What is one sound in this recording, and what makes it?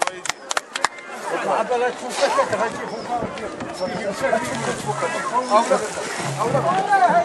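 Several men talk at once in a crowd outdoors.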